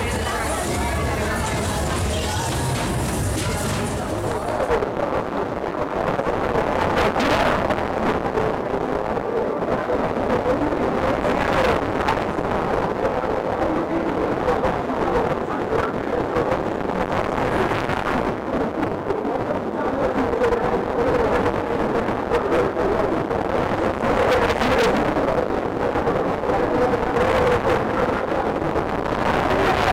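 A crowd of riders chatters and shouts nearby.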